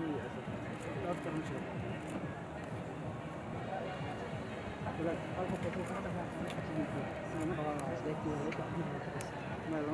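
A crowd of men murmurs and talks nearby outdoors.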